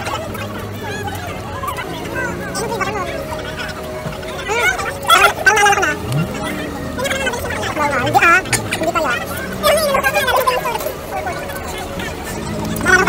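Young people talk and laugh close by with animation.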